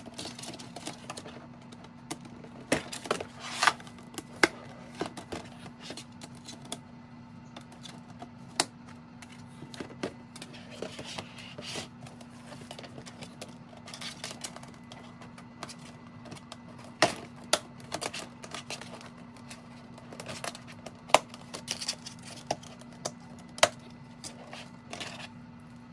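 Stiff plastic panels rustle, flex and knock as they are folded by hand.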